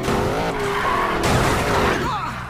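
A car crashes into a wall with a loud thud.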